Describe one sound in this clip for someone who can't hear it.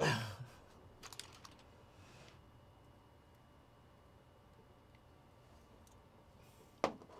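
Small plastic pieces click and snap in hands.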